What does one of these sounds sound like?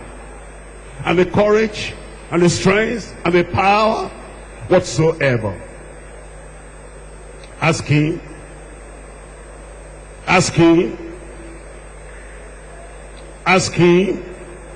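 An elderly man speaks forcefully through a microphone in short bursts with pauses.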